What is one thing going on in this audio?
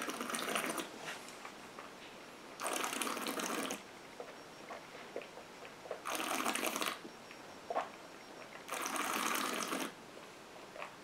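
A man exhales noisily through pursed lips several times.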